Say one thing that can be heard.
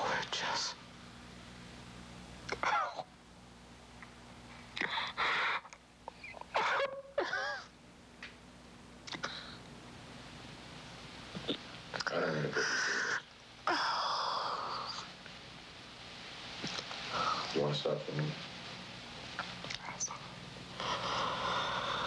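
A man sobs and cries.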